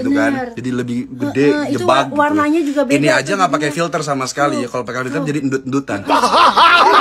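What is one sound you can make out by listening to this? A young man talks close by in a relaxed voice.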